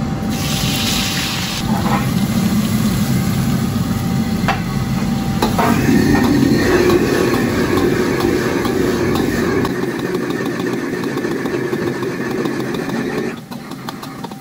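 Broccoli sizzles and hisses in a hot wok.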